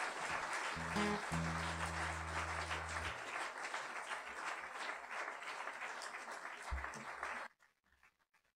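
A man plays a harmonica.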